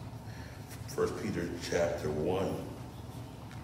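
A man speaks calmly into a microphone in a small echoing room.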